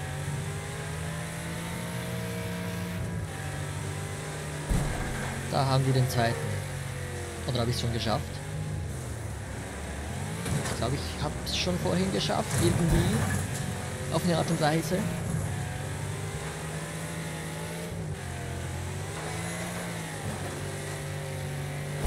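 A car engine roars steadily, rising and falling in pitch.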